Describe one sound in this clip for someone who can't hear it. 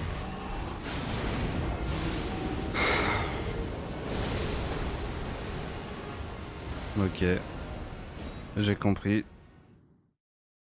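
Magic bursts whoosh and crackle.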